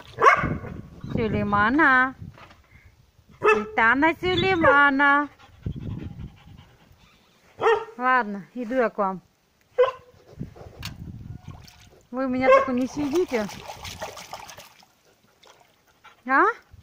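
A dog howls and whines in short, wavering bursts close by.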